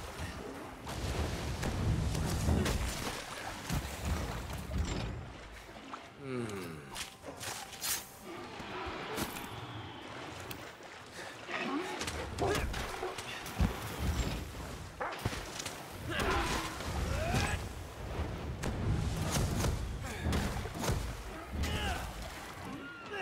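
Blades clang and strike against a large beast.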